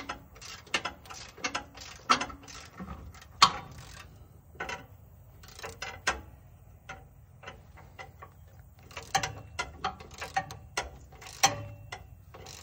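Metal tools clink and clank against engine parts.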